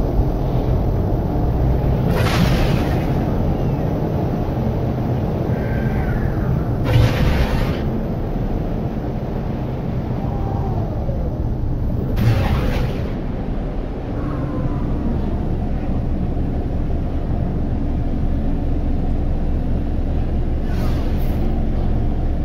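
A spacecraft engine rumbles steadily in flight.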